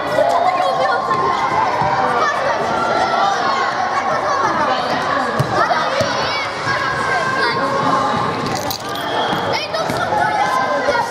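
Children shout and chatter loudly in a large echoing hall.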